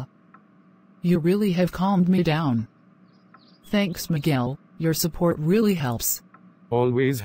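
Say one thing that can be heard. A woman speaks calmly in a synthetic voice.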